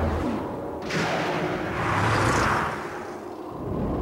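A craft whooshes past.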